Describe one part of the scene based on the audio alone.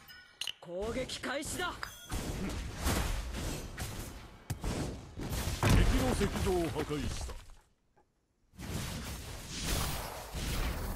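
Fantasy battle sound effects clash and burst with magic blasts and hits.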